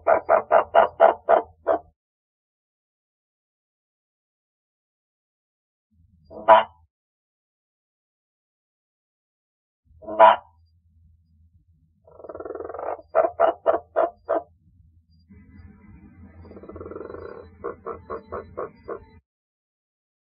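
A frog gives rapid clucking croaks in short bursts.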